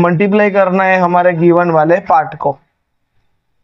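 A man speaks clearly and steadily, close to a microphone.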